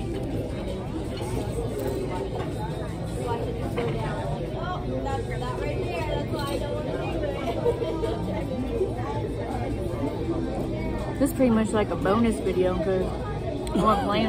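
A woman crunches on tortilla chips.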